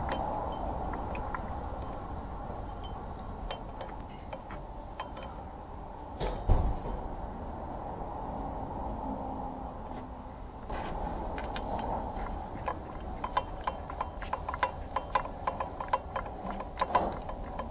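Metal parts clink and tap as a tool is fitted by hand.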